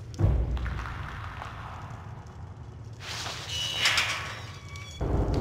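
A metal gate creaks as it swings open.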